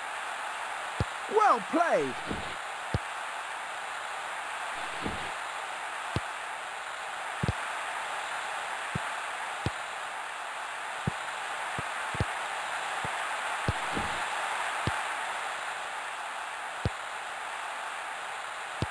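A football is kicked again and again with short, dull thuds.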